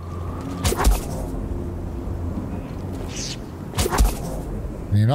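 A lightsaber hums and swooshes.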